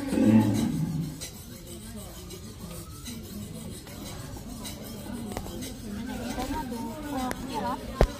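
A knife scrapes and shaves the skin off a gourd.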